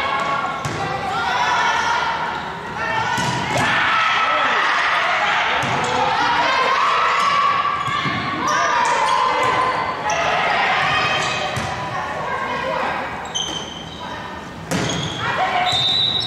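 A volleyball thuds off players' hands and arms.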